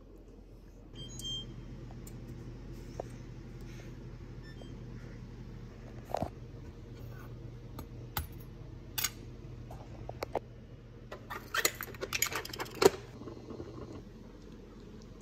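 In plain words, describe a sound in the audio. An oven hums steadily.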